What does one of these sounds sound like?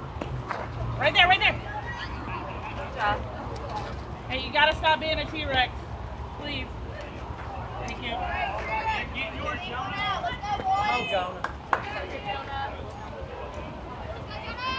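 Young players shout and cheer across an open field.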